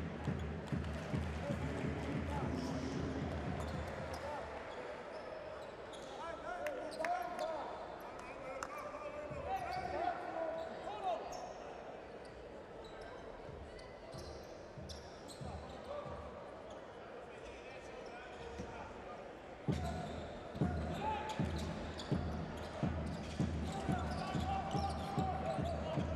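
A basketball bounces repeatedly on a hardwood court.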